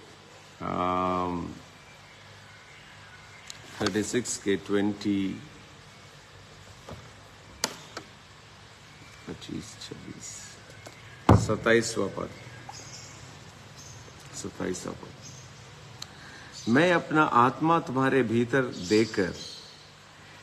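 An elderly man speaks calmly close to a microphone, in short bursts with pauses.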